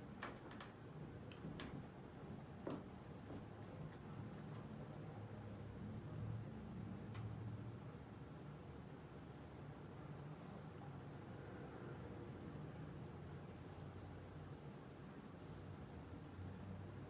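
A ceiling fan hums and whirs steadily with a low rumble.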